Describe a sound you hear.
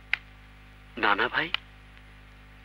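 A man speaks sharply up close.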